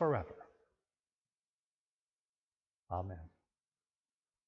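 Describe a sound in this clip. An elderly man speaks calmly and briefly into a microphone.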